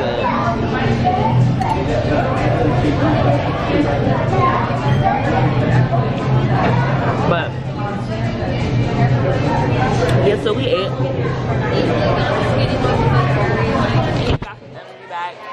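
A crowd of men and women chatter around the recorder in a busy, echoing room.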